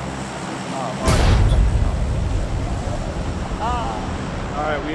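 Wind rushes loudly past during a free fall.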